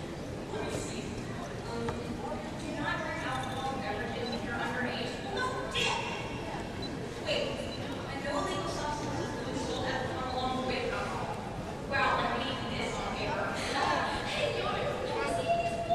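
Young women speak with animation, heard through loudspeakers in a large hall.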